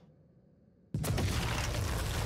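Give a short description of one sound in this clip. An explosion roars and crackles.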